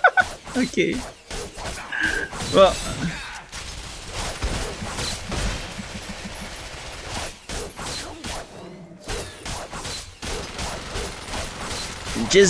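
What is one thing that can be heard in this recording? Blows and blasts crack and thud in a fast fight.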